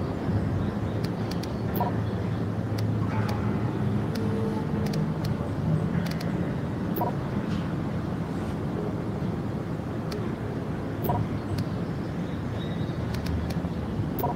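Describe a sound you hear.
Short interface clicks sound as menu options are selected.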